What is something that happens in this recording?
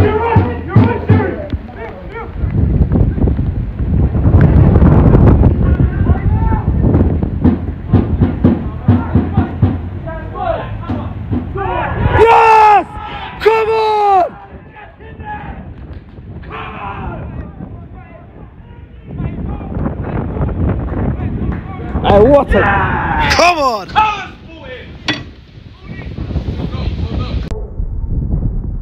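Football players shout to each other across an outdoor pitch.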